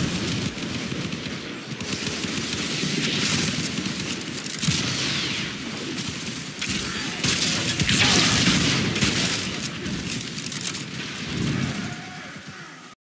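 Gunfire and blasts crackle and boom in quick bursts.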